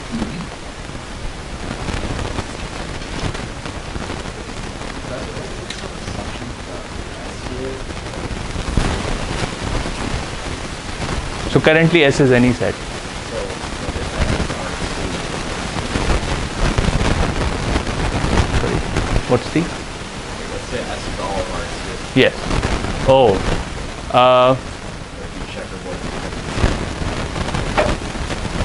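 A man speaks calmly to a room, slightly distant.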